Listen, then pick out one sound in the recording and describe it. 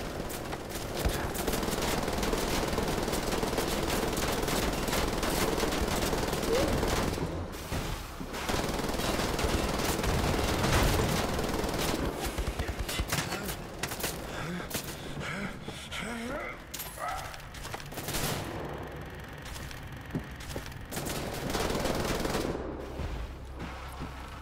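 A heavy gun fires rapid, loud bursts with a hard echo.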